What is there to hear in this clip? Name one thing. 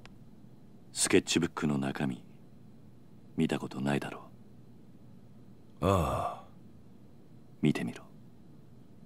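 A younger man speaks in a low, firm voice.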